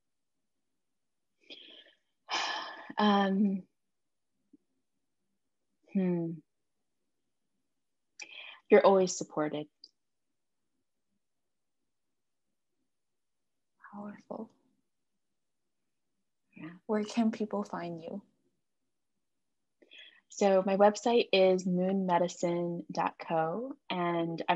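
A second woman responds briefly over an online call.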